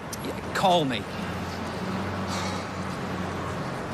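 A man talks on a phone outdoors.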